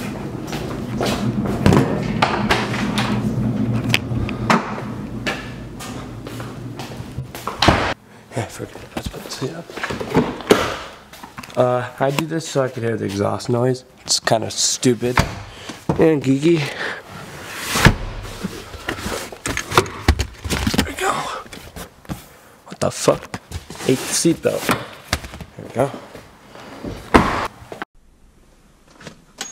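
Objects knock and rustle as things are handled close by.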